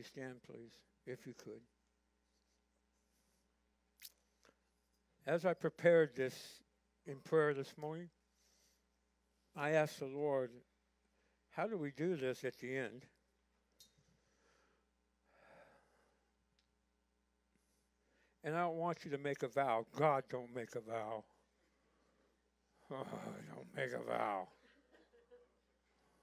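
An older man speaks calmly through a microphone in a large room, pausing between phrases.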